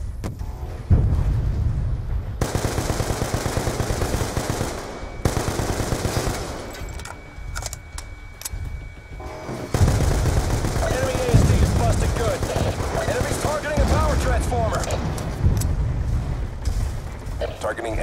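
Automatic gunfire rattles rapidly in long bursts.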